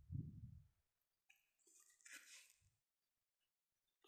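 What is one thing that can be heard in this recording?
Boot laces rustle as a boot is turned over.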